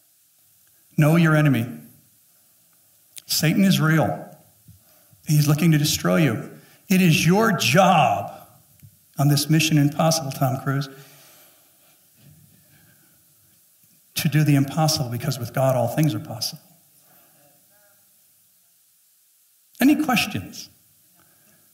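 A man speaks calmly into a headset microphone, pausing between phrases.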